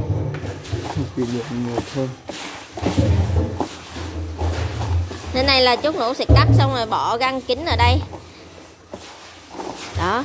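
Hands squelch and squeeze wet leaves in a bucket.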